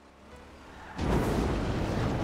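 A car engine roars as a car speeds along.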